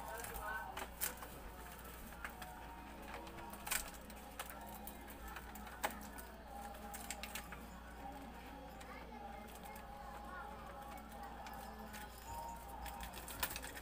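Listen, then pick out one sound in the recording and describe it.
Plastic packets rustle and crinkle as they are handled close by.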